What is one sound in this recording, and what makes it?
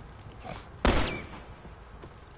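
A gunshot bangs loudly and echoes.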